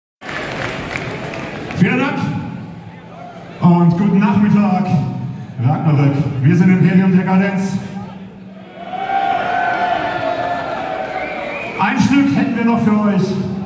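A rock band plays loudly through a large sound system in an echoing hall.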